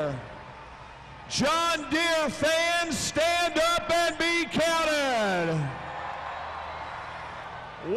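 A large crowd cheers in a big echoing hall.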